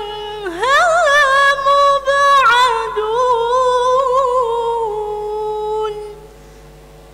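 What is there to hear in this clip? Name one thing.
A young woman chants melodically into a microphone, her voice rising and falling in long drawn-out notes.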